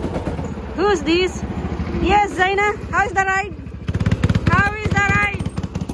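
A go-kart engine revs close by.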